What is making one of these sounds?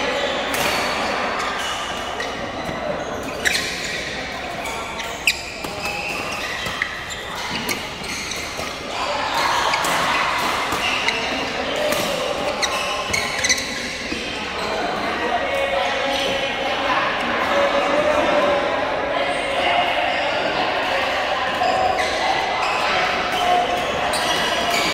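A large hall echoes with the chatter of many players.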